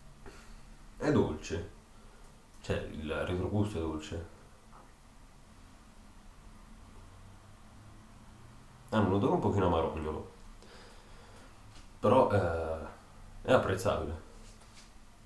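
A young man speaks calmly, close by, in short bursts.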